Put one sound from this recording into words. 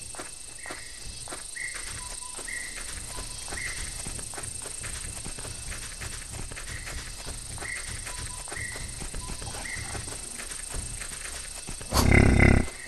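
Heavy footsteps plod along at a steady pace.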